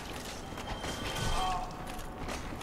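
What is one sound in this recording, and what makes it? A sword swings and strikes a skeleton with a sharp clash.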